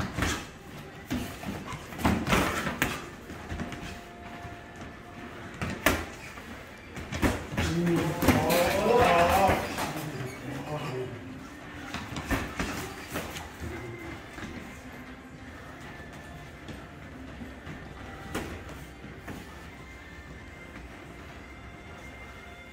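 Boxing gloves thud against pads and gloves.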